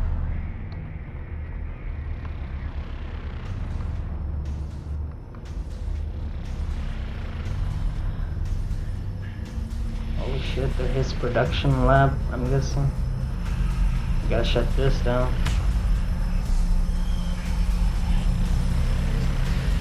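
Heavy machinery hums low and steady in a large echoing hall.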